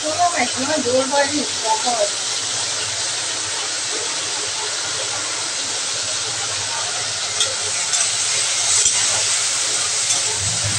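Food sizzles in hot oil in a pan.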